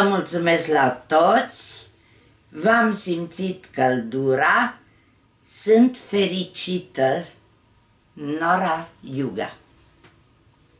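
An elderly woman reads aloud calmly, close by.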